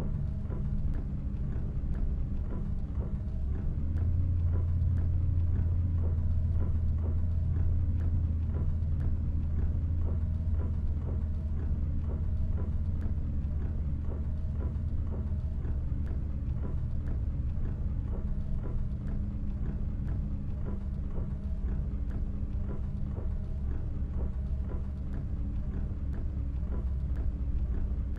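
A bus engine hums low and steady as it drives.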